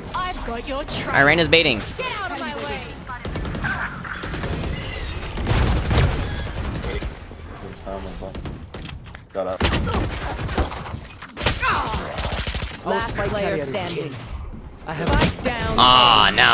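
Gunshots crack in quick bursts.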